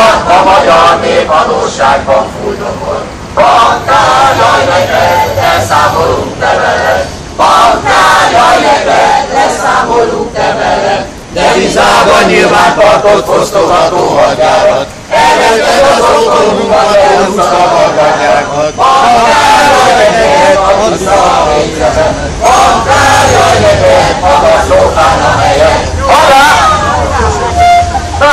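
A crowd of men and women sing together outdoors.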